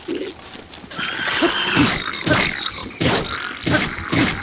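A monster growls and snarls up close.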